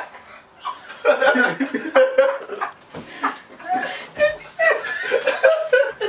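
Several young men and a young woman laugh loudly together.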